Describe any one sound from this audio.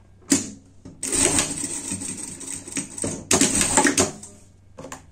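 A sewing machine whirs as it stitches rapidly.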